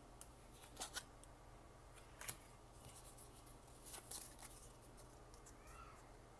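Trading cards flick and slap against each other as they are shuffled by hand.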